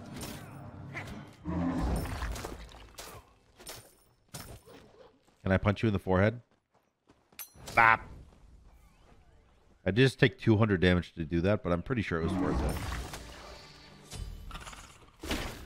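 Magic blasts whoosh and crackle in a fight.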